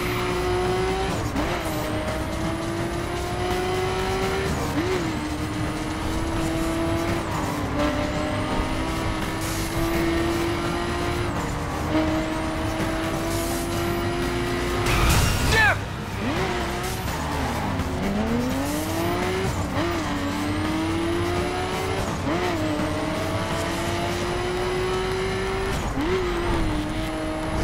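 A car engine revs hard, rising in pitch and dropping with each gear change.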